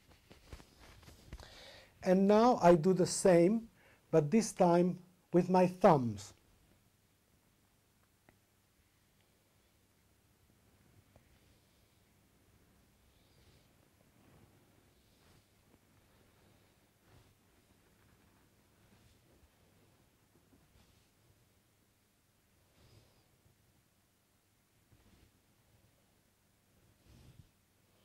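Hands rub softly on fabric.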